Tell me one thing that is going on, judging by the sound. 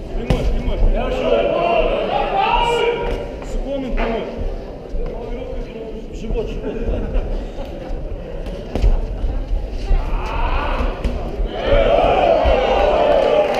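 Boxing gloves thud against bare bodies.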